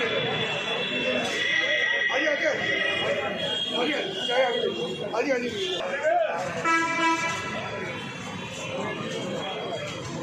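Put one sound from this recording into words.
A crowd of men talks loudly all around, close by.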